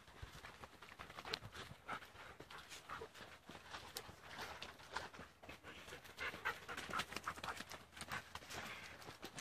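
Several dogs patter quickly along a dirt path.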